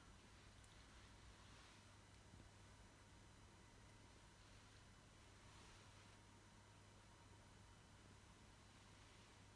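A cat purrs softly up close.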